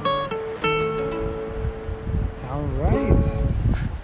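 A ukulele is strummed.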